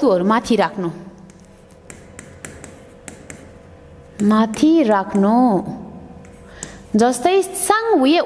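A woman speaks clearly and steadily, as if teaching, close to a microphone.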